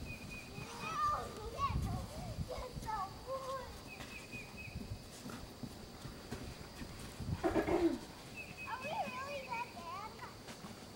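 Footsteps crunch in snow.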